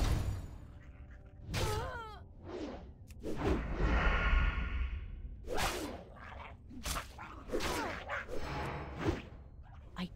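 Weapons strike and clang in a fight.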